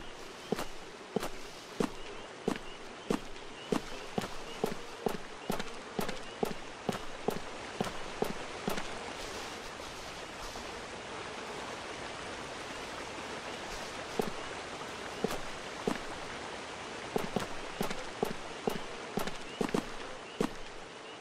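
Footsteps crunch on gravel at a steady pace.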